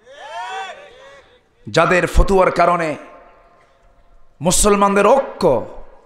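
A man preaches forcefully into a microphone, heard through loudspeakers with a slight echo.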